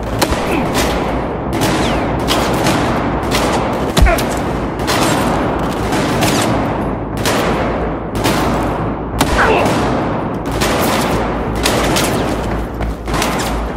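Gunshots ring out again and again, with loud echoing booms.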